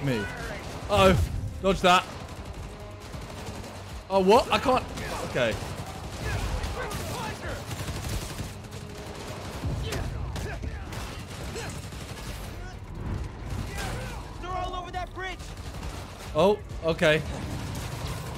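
Game characters shout during a fight.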